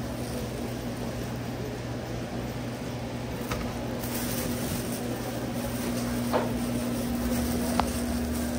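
A steady low electrical hum fills a large indoor room.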